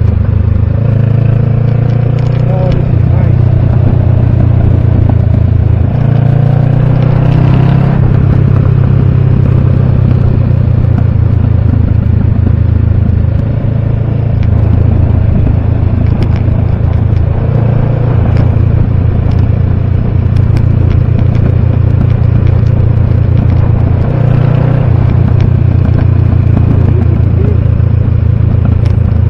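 A motorcycle engine rumbles steadily close by, shifting pitch as it speeds up and slows.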